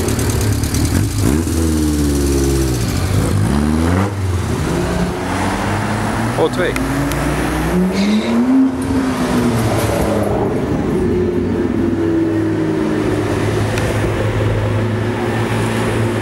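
A sports car engine revs loudly and roars as it drives past.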